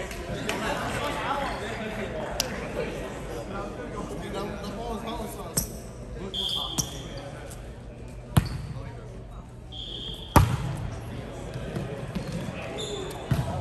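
Young men and women talk and call out across a large echoing gym.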